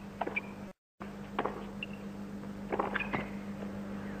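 A tennis ball is struck with a racket with sharp thwacks.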